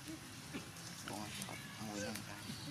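A baby monkey squeals and cries in short high calls.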